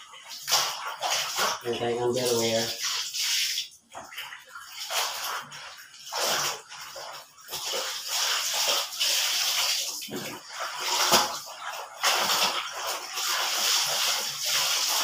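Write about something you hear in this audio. Wet cloth squelches and rubs as it is scrubbed.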